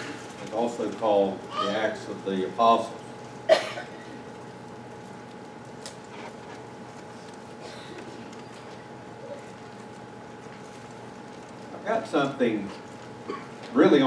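A middle-aged man speaks calmly into a microphone in a large, echoing room, pausing at length between phrases.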